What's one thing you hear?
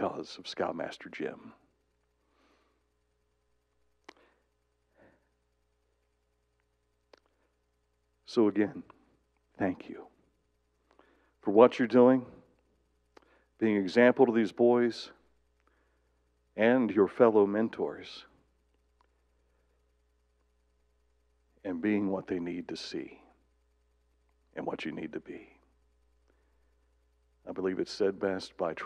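A middle-aged man speaks into a microphone in phrases with long pauses, heard through loudspeakers in a large room.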